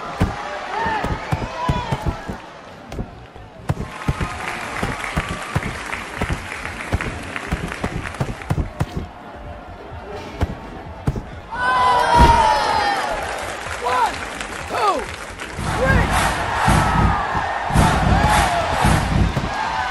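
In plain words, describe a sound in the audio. Heavy punches land with dull thuds.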